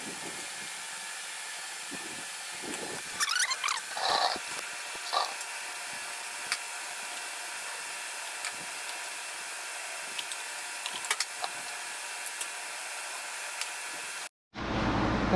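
Metal tools click and clink.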